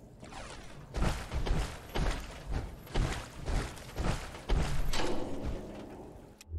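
Heavy metal footsteps thud and clank on a hard floor.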